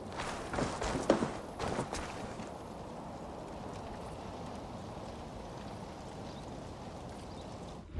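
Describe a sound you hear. Footsteps thud on dirt.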